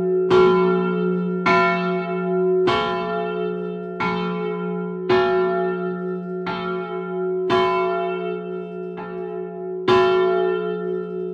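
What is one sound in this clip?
A large bell swings and tolls loudly and steadily, each stroke ringing on.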